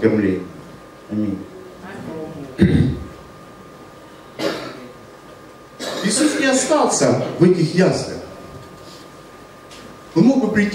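A man speaks into a microphone over loudspeakers, with pauses, in a room with some echo.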